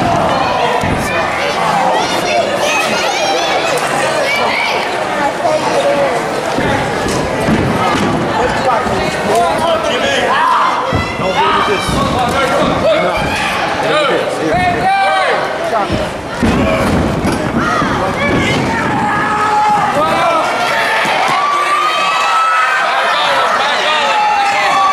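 A crowd of men and children shouts and cheers in a large echoing hall.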